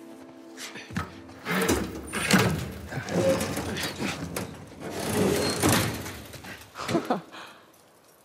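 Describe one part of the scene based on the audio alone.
A heavy metal hatch creaks and scrapes open.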